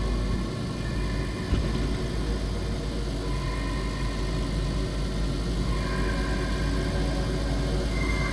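Tyres rumble over gravel.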